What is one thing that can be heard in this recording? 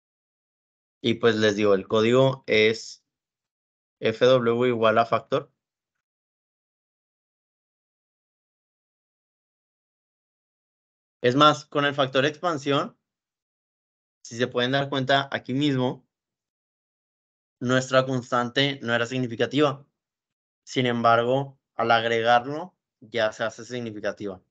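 A man speaks calmly into a microphone, explaining in short bursts with pauses.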